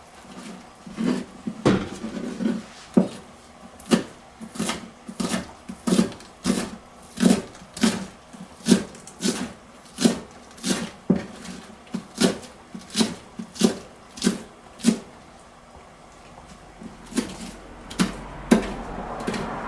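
A knife chops steadily on a wooden cutting board.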